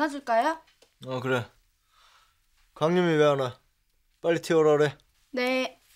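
A young man answers close by in a low, flat voice.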